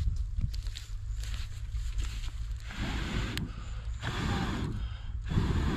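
A stick pokes and scrapes through burning embers.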